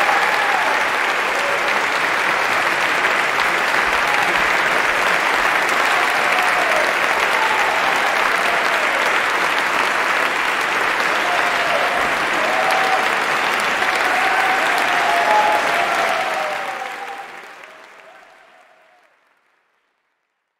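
A large crowd applauds loudly in an echoing hall, then the applause fades away.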